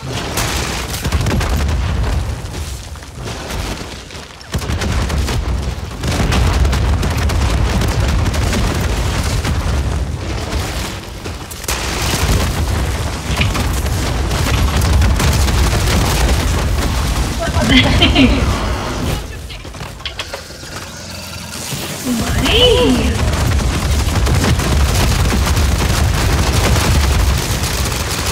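Gunfire and explosions from a video game boom and crackle.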